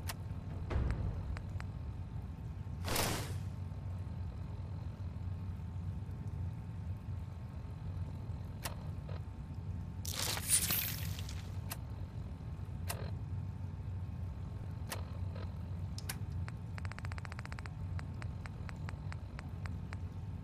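Short electronic clicks and beeps tick now and then.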